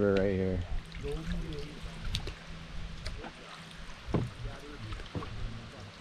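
Paddles dip and splash in calm water.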